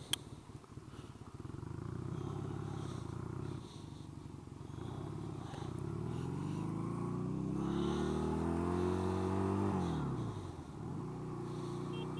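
A motorcycle engine rumbles close by, revving up through the gears and dropping back between shifts.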